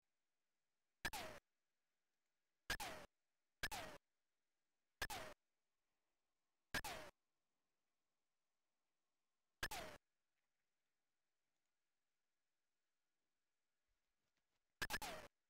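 A retro video game plays short descending electronic bleeps, several times.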